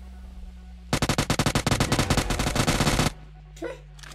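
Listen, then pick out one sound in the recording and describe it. Rapid gunfire rattles in a fast burst.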